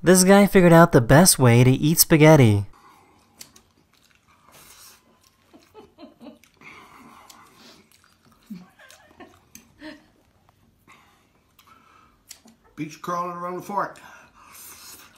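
A man slurps and chews food noisily.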